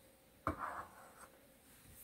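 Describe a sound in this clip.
A knife scrapes against the rim of a small glass jar.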